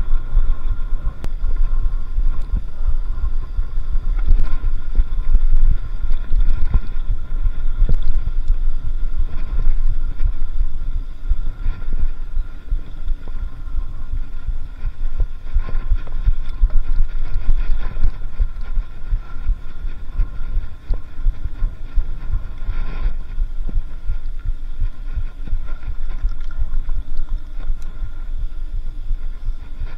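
Wind rumbles loudly past the rider.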